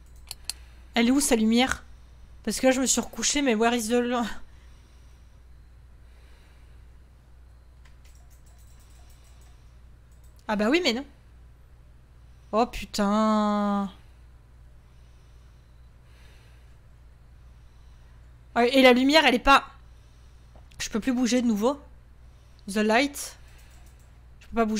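A young woman speaks in short bursts, close to a microphone.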